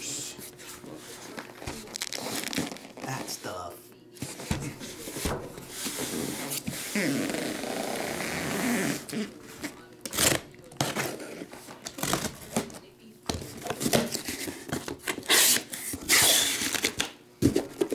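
Hands handle and shift a cardboard box on a table.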